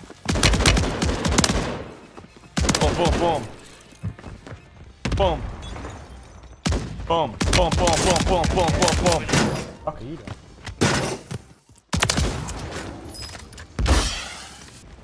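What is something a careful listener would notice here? Gunfire bursts rapidly and loudly.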